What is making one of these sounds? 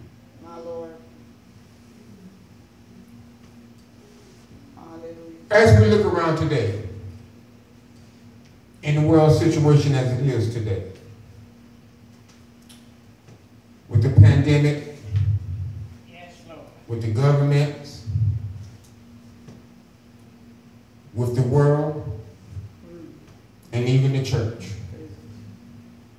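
A man preaches into a microphone with animation, heard through loudspeakers in an echoing room, in bursts separated by pauses.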